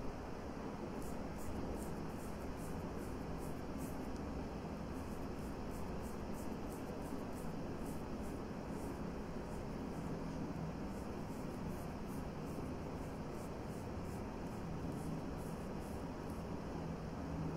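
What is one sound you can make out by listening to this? A makeup brush strokes softly against skin.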